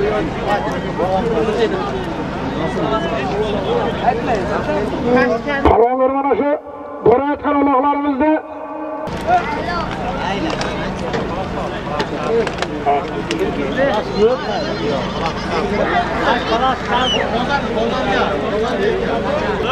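A crowd of men talks and calls out loudly outdoors.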